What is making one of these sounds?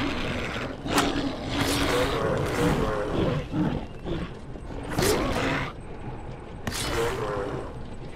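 Fiery bursts whoosh and crackle.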